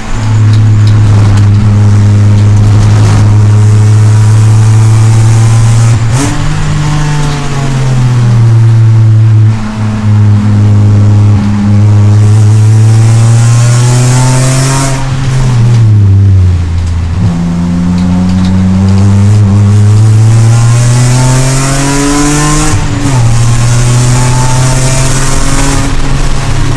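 A car engine roars loudly from inside the cabin, revving up and dropping as gears shift.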